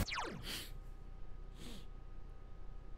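Video game menu sounds whoosh quickly downward.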